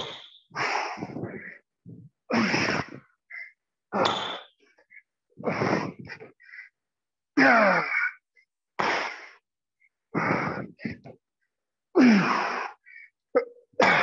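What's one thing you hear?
Feet thump on a wooden floor as a man jumps and lands.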